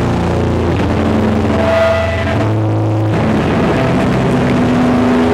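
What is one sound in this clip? A band plays loud distorted guitars.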